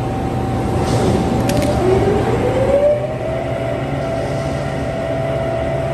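An overhead crane whines as it lifts a load of metal plates.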